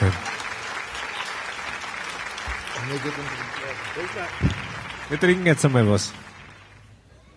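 A band plays lively music.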